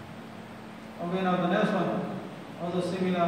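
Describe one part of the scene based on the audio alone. A man speaks calmly into a microphone in an echoing hall.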